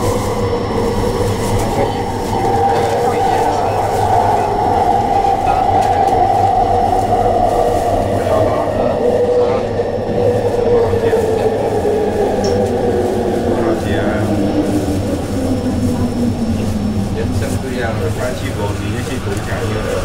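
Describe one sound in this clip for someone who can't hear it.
A train rumbles along on its track.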